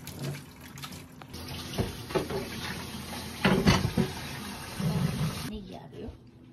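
Pasta rustles and shakes in a metal colander.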